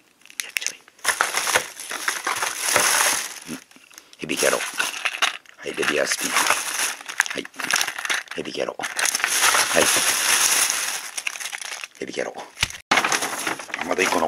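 A plastic bag rustles and crinkles loudly close by.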